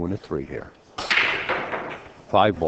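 Pool balls clatter as a cue ball breaks a tightly packed rack.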